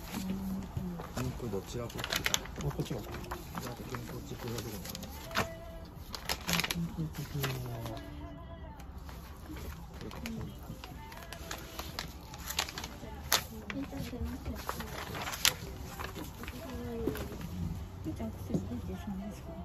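Sheets of paper rustle and flap as they are handled and turned.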